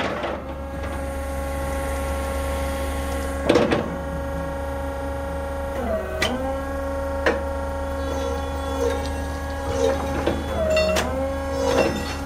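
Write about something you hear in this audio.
An electric forklift motor hums and whines steadily, dipping and rising in pitch now and then.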